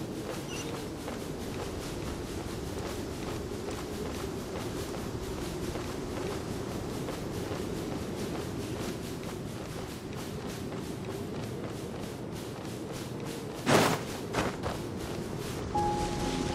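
Quick footsteps run steadily over dry ground.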